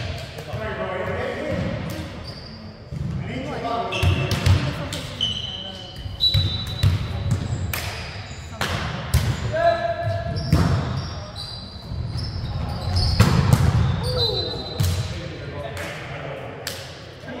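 Young men shout and call out to each other, echoing in a large hall.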